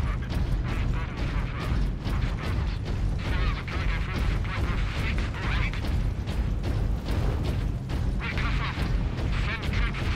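Heavy armoured footsteps thud steadily on rubble.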